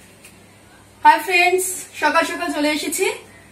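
A woman speaks cheerfully and close by.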